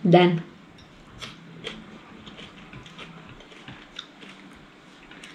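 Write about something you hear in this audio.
Soft clicks and taps of eating sound close by.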